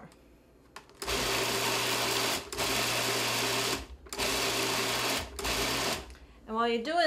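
A food processor whirs loudly in short bursts.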